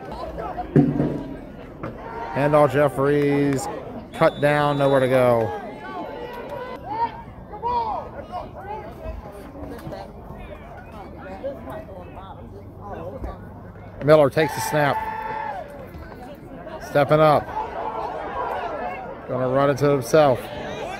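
Young men shout loudly nearby.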